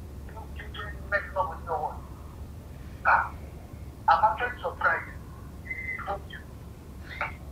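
A young woman speaks close by with an upset, pleading tone.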